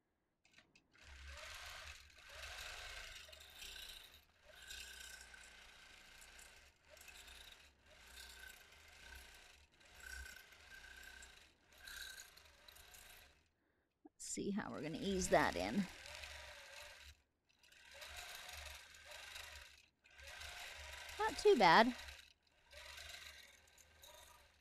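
A quilting machine hums and stitches in short runs.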